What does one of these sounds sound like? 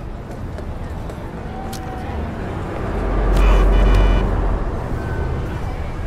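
A car engine roars as a car pulls up close.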